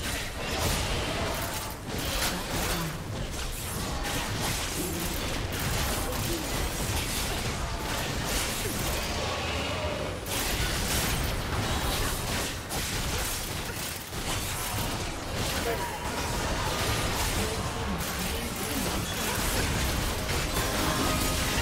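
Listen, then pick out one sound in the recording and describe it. Game spell effects and attacks crackle and clash continuously.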